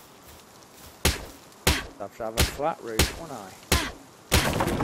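An axe chops hard into a wooden wall with sharp blows.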